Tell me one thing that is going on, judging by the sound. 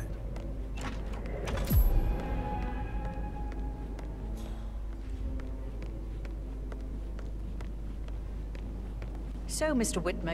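Footsteps tap steadily across a wooden floor.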